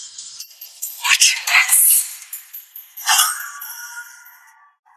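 A young woman speaks tearfully.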